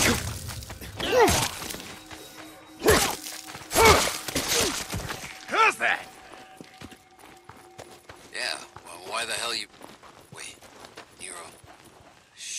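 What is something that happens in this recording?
Footsteps crunch quickly on a gravel path.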